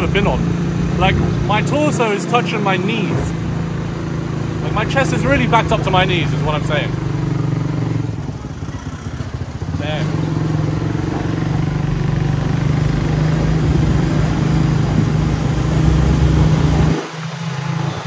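A small motor vehicle's engine hums steadily while driving.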